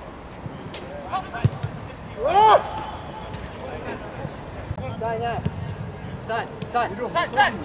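Players shout to each other from a distance, outdoors.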